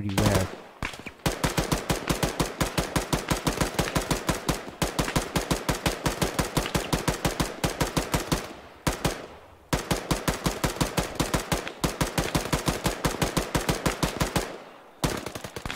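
A machine gun fires long, rapid bursts at close range.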